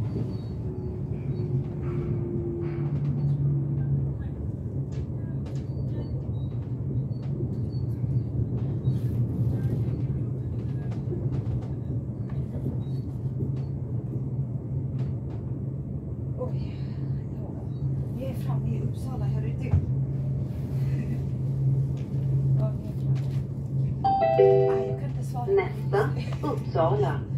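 A train hums and rumbles steadily along the tracks from inside a carriage.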